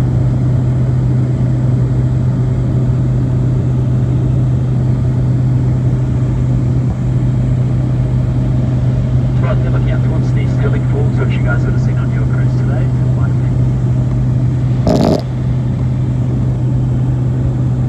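A single-engine light aircraft's piston engine drones, heard from inside the cabin.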